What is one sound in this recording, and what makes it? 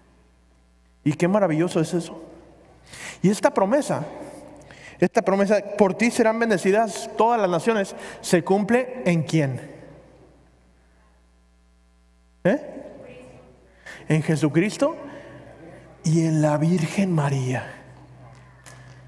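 A man speaks calmly through a microphone, echoing in a large reverberant hall.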